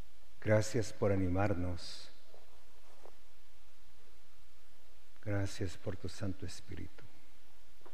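A man speaks slowly and solemnly into a microphone, with long pauses.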